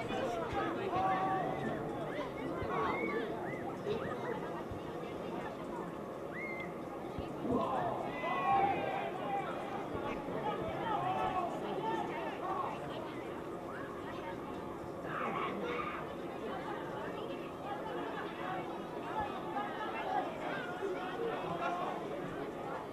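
Men shout across an open field.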